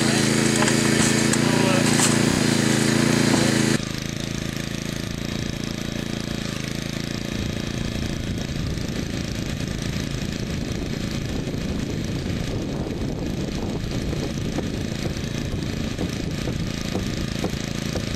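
A hydraulic rescue tool whines and hums close by.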